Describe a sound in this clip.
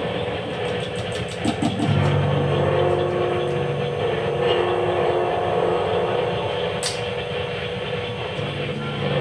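Electric guitars play droning, sustained experimental tones.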